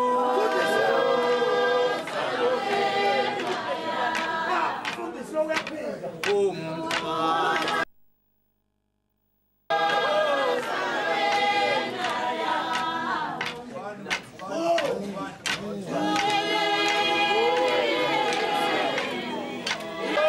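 A group of men and women sing together.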